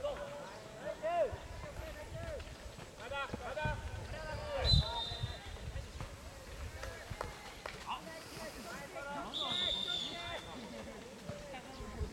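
Young men shout and call out to each other at a distance across an open field.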